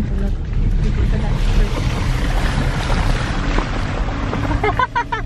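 Tyres splash through a muddy puddle.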